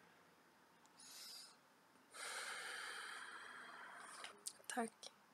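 A young woman breathes in and out slowly and deeply.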